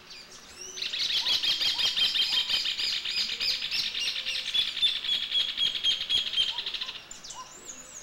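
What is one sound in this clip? A flock of birds chatters and screeches loudly nearby.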